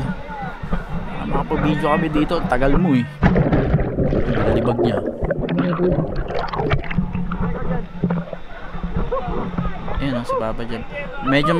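Water splashes close by as a swimmer moves through it.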